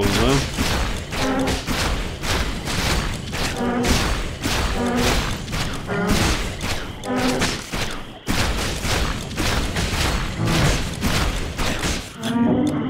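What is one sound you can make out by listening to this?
A blade clashes and strikes again and again in a fight.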